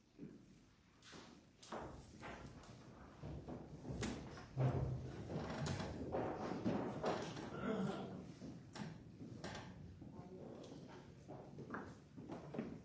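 People shuffle and move about on a wooden floor in a room with some echo.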